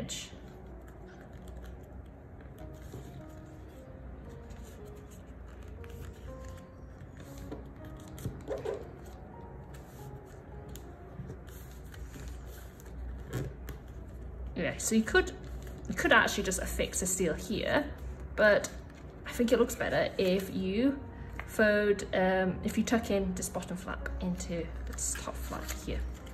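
Paper rustles and crinkles softly as it is folded.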